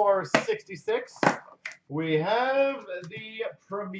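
Cardboard box flaps rustle and scrape as a box is opened.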